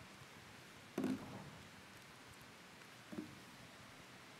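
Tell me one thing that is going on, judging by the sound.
A microphone stand knocks as it is moved.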